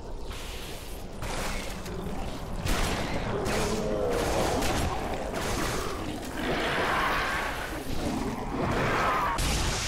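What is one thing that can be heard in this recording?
An energy sword hums and swishes as it swings.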